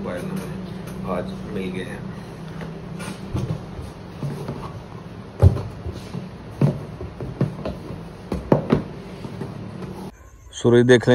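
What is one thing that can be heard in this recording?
Cardboard boxes knock and rustle as they are handled.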